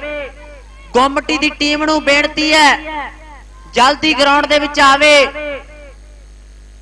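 A man announces loudly over a loudspeaker.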